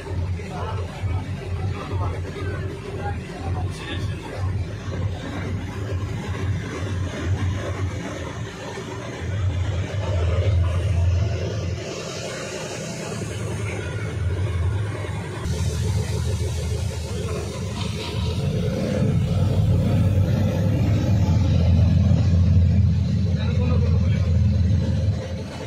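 Water sloshes and splashes under car tyres.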